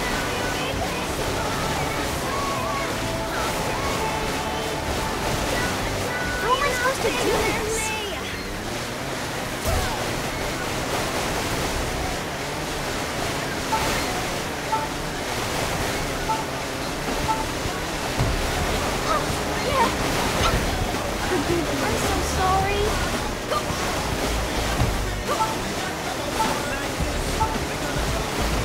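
Water splashes and sprays against a jet ski.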